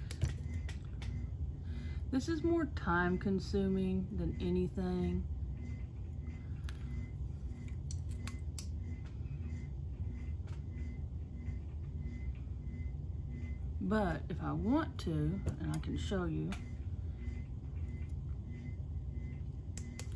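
Small plastic and metal parts click and tap as they are handled.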